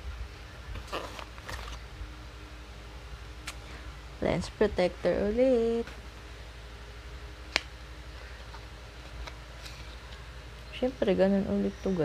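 A paper packet rustles and crinkles in hands.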